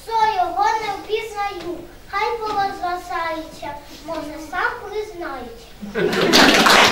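A young girl recites a verse in a clear, lively voice.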